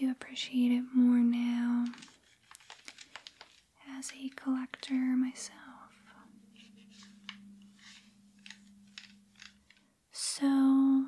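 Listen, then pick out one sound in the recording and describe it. A cloth wipes across a plastic game console.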